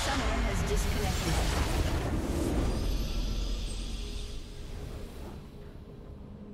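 A loud burst of magical blasts and explosions bursts out, then fades.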